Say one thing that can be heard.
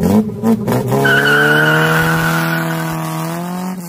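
A car engine revs up loudly as the car pulls away.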